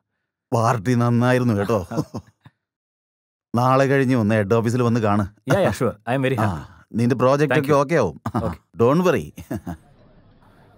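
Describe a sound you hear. A man speaks loudly and with animation, close by.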